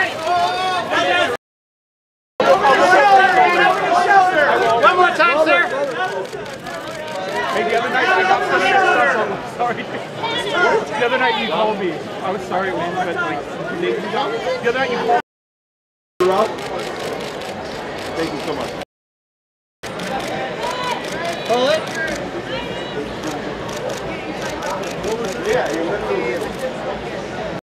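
Several people talk and call out over one another nearby.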